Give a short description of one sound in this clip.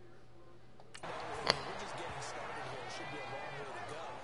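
A stadium crowd murmurs and cheers.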